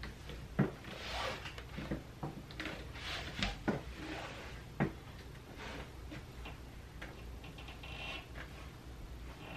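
Boots creak and shuffle on a metal folding chair.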